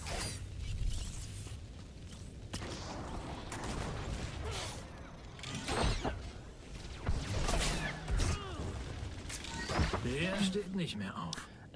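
Energy blades hum and clash in a fight.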